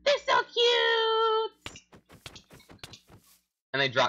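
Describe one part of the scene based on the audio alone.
A sword strikes a creature with a short dull hit.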